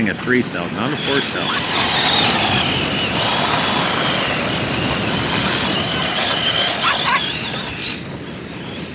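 A small electric motor whines loudly as a toy car races across sand.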